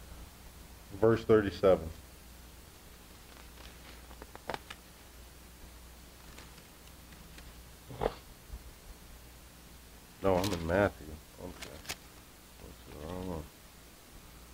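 A man speaks briefly and calmly into a microphone, with long pauses.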